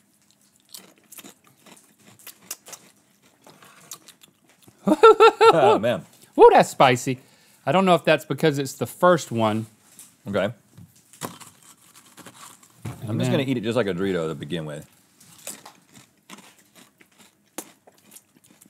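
A man crunches on crisp chips close by.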